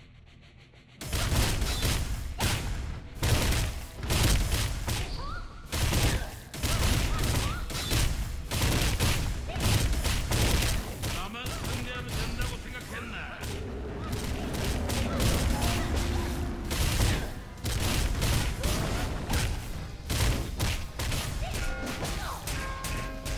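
Weapons clash and thud in a fast fight.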